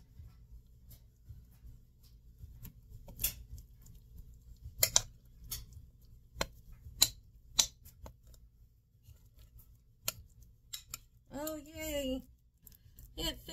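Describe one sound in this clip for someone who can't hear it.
A spoon scrapes and taps against a glass bowl.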